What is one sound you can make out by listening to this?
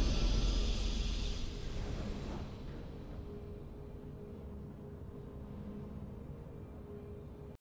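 A triumphant victory fanfare rings out and slowly fades.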